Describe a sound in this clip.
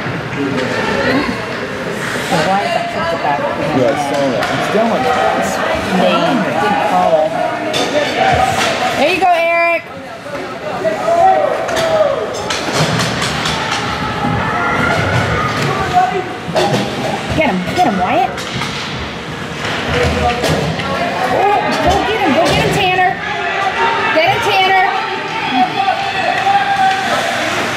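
A crowd of spectators cheers and shouts.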